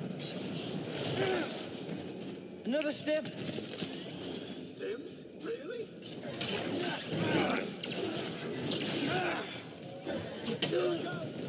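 Blades clash with sharp metallic strikes.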